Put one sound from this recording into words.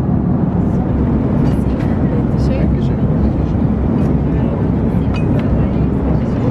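Dishes clink softly on a tray.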